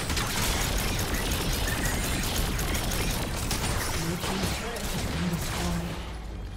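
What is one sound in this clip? Magic blasts crackle and burst in a busy fight.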